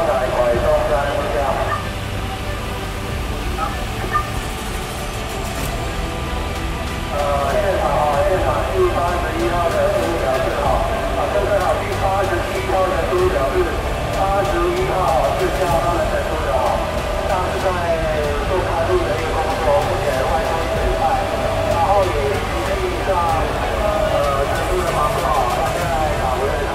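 A fire engine's motor idles nearby with a steady low rumble.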